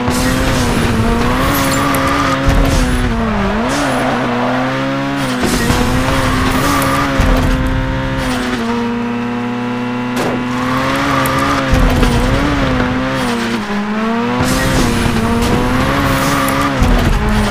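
Tyres screech as a car slides through turns.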